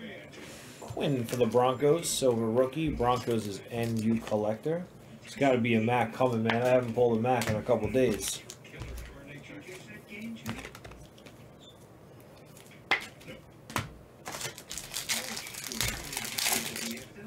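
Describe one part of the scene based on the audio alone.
Cards rustle and tap as they are handled.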